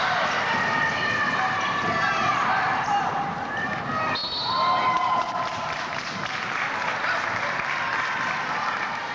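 Spectators murmur in a large echoing hall.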